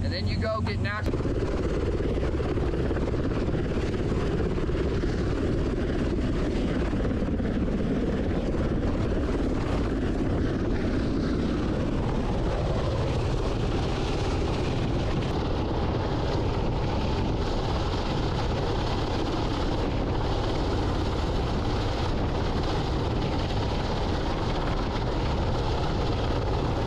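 A helicopter's rotor thumps and roars overhead.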